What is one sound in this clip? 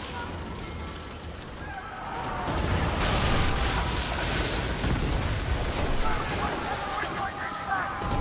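Waves slosh against a wooden ship's hull.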